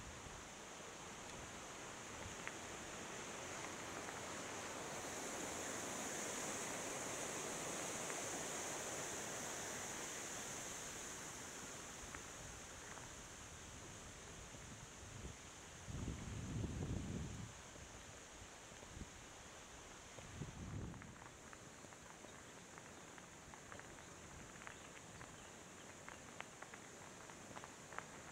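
Tyres crunch and rattle over a gravel trail.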